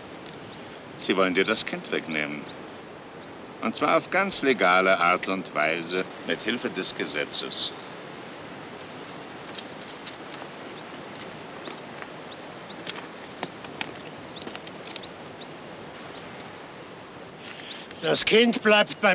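An elderly man speaks slowly in a rough voice, close by.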